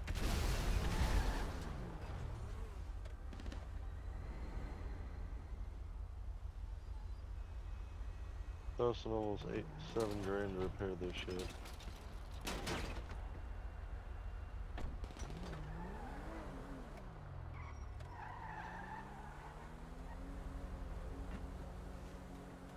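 A car engine hums and revs as the car drives off.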